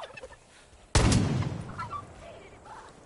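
A pistol fires a single loud shot that echoes outdoors.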